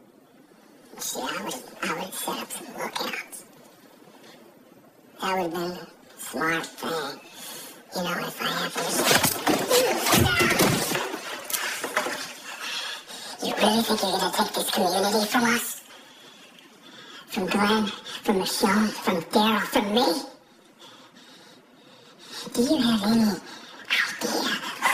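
A man speaks tensely and threateningly up close.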